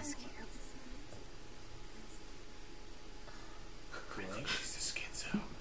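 A young woman speaks softly and hesitantly.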